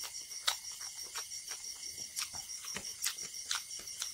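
Fingers squish and mix rice in a plate.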